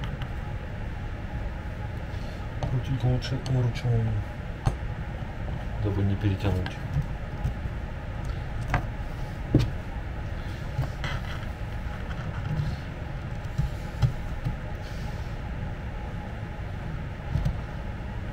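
A metal handle knocks and taps against a wooden board.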